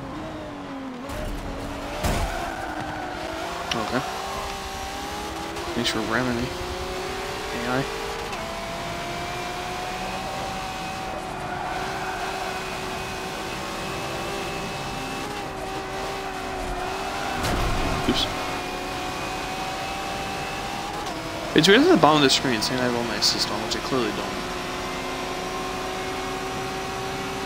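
A racing car engine roars steadily, rising in pitch as it shifts through the gears.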